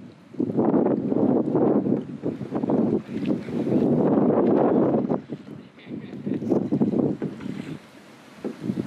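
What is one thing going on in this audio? Wind blows hard outdoors in strong gusts.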